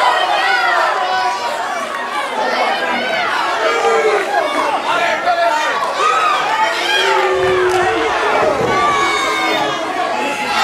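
A crowd of children and adults shouts and cheers excitedly nearby.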